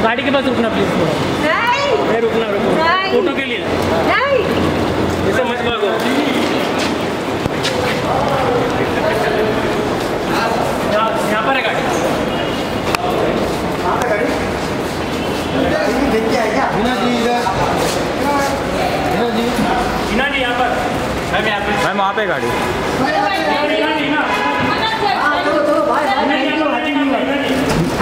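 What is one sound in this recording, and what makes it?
Several men shout and call out loudly nearby.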